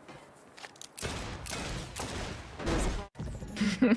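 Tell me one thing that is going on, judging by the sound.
A car smashes and explodes with a loud crash.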